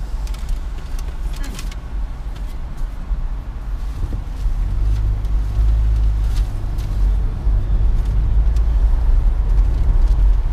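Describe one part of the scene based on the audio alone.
A car engine hums low inside the car as it drives along a street.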